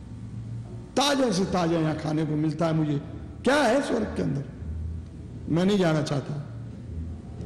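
An elderly man chants in a slow, drawn-out voice, close to a microphone.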